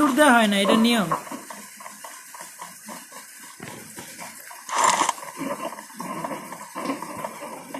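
Footsteps patter quickly over dirt and grass.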